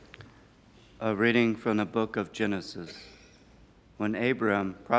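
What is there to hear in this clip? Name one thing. A man sings in a chanting voice through a microphone, in an echoing room.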